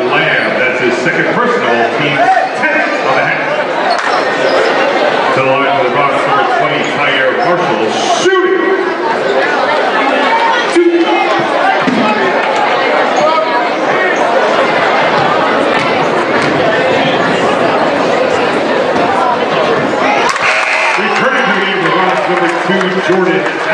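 A large crowd chatters and cheers in an echoing gym.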